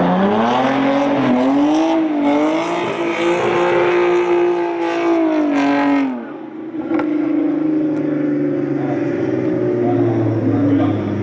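A car engine roars loudly, revving up and down as the car drifts.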